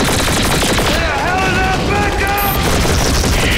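A man shouts loudly up close.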